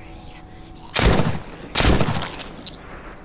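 A revolver fires two loud shots close by.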